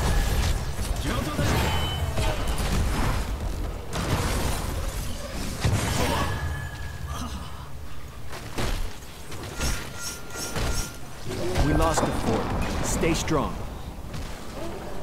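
Game weapons and spells clash and burst in a rapid fight.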